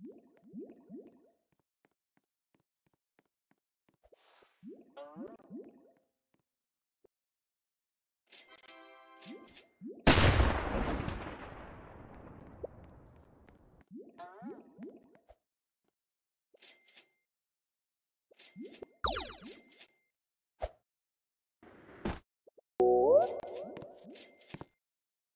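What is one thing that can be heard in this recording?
Short electronic game sounds blip and chime now and then.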